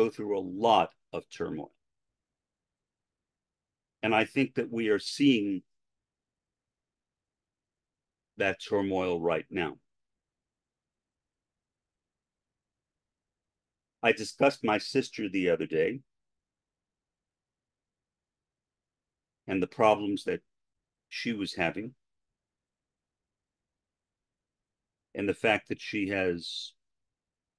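An older man speaks calmly into a microphone in short phrases with long pauses.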